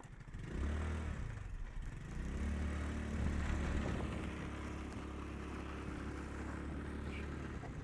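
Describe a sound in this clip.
Tyres roll over gravel.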